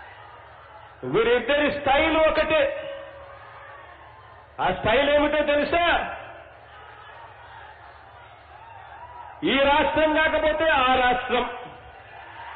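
A middle-aged man speaks with animation into a handheld microphone, in short bursts.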